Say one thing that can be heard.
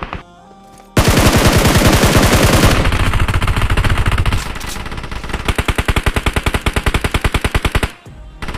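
A machine gun fires in long, rapid bursts.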